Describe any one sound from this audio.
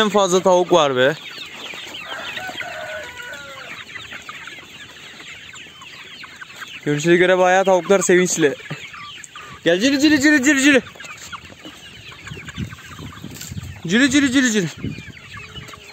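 A rooster crows loudly several times.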